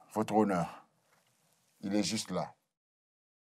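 A man speaks loudly and firmly close by, in short bursts.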